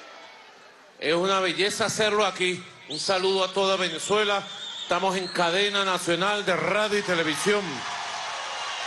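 A large crowd chants loudly in rhythm.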